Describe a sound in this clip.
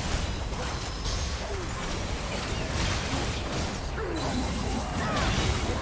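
Magic blasts and weapon hits crackle and burst in a busy fantasy battle.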